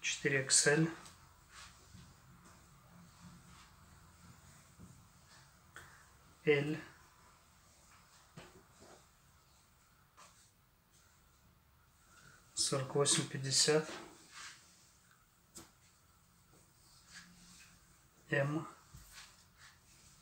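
Cloth rustles softly as garments are handled.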